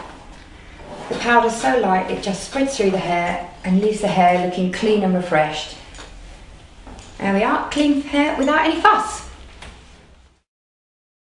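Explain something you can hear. A woman speaks calmly and clearly, close to a microphone.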